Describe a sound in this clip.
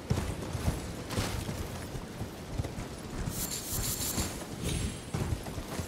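A horse gallops with quick, heavy hoofbeats on soft ground.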